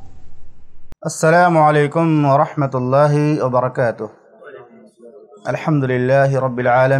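A man speaks calmly and steadily into a close microphone.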